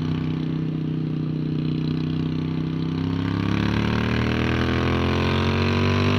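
A motorcycle engine roars close by, its pitch rising as it accelerates.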